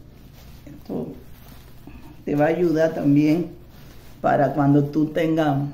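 Fabric rustles as a cloth is tied around a neck.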